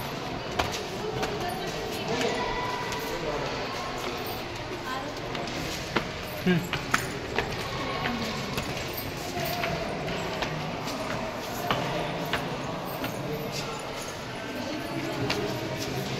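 Footsteps tap on stone stairs in an echoing hall.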